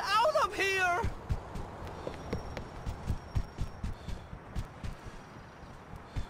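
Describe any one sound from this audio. Footsteps thud quickly on soft ground as a man runs.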